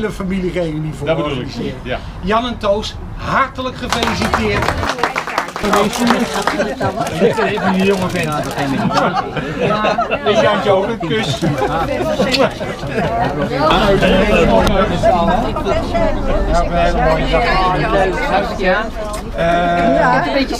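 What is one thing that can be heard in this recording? A group of people chatter and talk at once outdoors.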